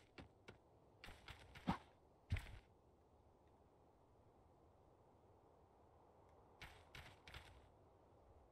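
Small footsteps patter on grass.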